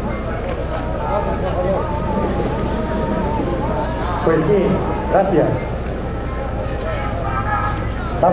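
People talk and call out nearby outdoors.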